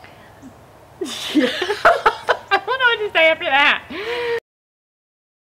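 Two women laugh loudly together close by.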